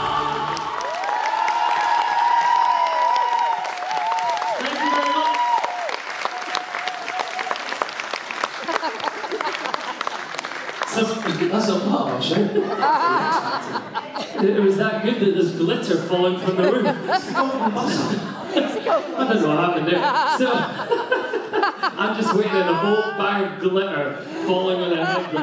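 Men sing together into microphones over loudspeakers in a large hall.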